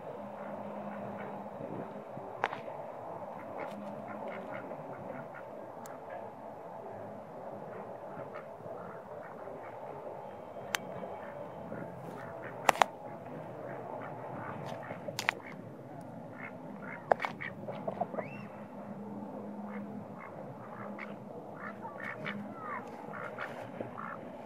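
Ducks quack softly nearby.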